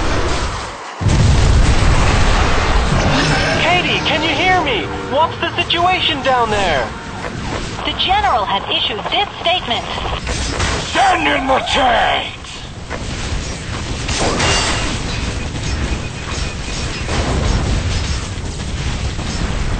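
Game explosions boom and crackle.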